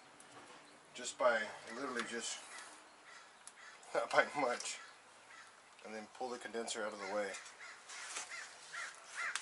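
A man talks calmly close by.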